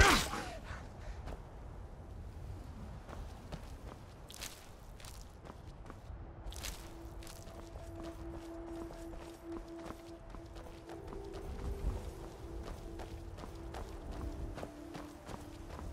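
Footsteps tread steadily on stone and dirt.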